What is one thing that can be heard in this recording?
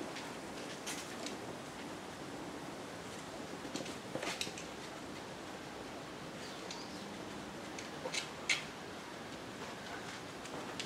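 Wind rustles through tree leaves outdoors.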